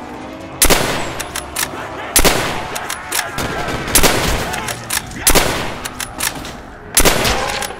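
A rifle fires single loud shots with a short echo.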